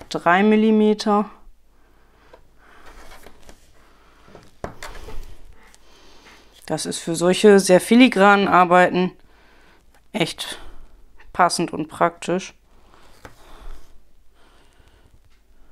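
Paper rustles and scrapes softly under hands.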